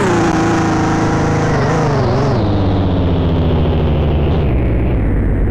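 A car engine whines high and then winds down as the car slows.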